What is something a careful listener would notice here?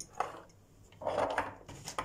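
Dried spices rattle in a glass jar as it is shaken.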